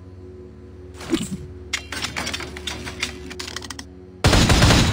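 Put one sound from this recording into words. A crossbow fires with sharp clicks and twangs.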